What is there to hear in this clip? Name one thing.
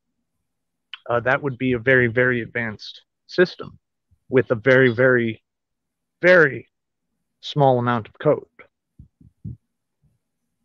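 A young man talks calmly over an online call.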